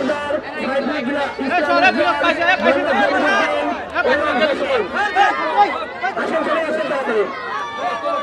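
A man speaks loudly to a crowd outdoors.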